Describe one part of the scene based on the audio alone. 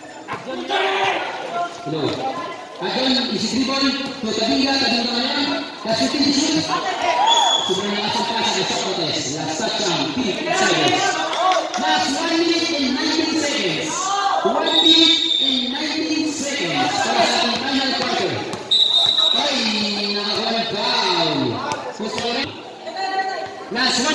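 A crowd of spectators talks and cheers in a large echoing hall.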